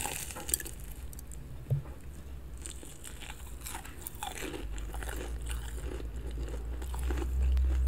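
A young woman chews crunchy food with loud crackling close to a microphone.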